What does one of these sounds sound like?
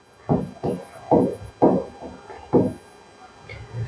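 A marker squeaks in short strokes on a board.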